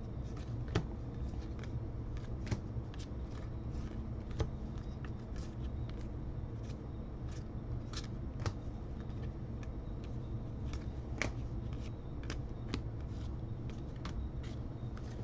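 Trading cards shuffle and flick against each other in someone's hands.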